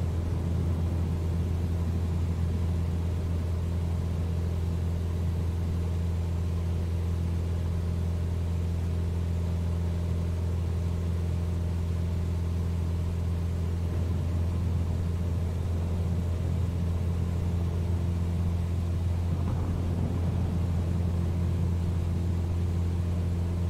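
A small propeller plane's engine drones steadily in flight.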